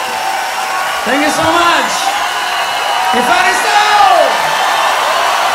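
A man shouts into a microphone with excitement.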